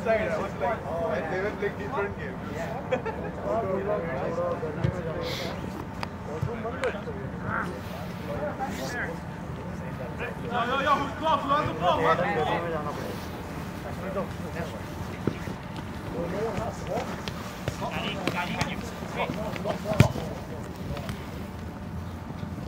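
Men shout and call to each other outdoors across a playing field.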